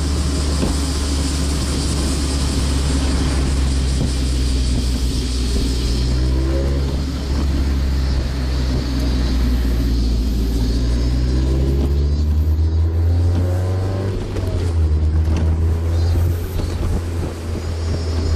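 A car engine hums low and steady, rising and falling in pitch as the car drives.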